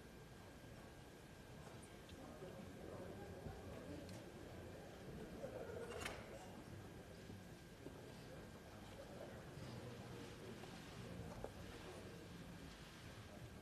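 A crowd of men and women murmur and chatter quietly in a large room.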